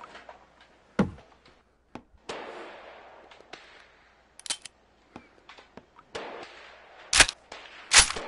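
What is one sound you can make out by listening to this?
A rifle's metal parts click and clack as it is handled.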